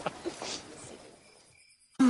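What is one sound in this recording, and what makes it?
A man laughs heartily nearby.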